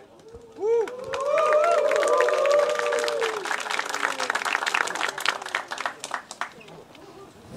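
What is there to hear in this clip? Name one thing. A crowd claps and shouts rhythmically.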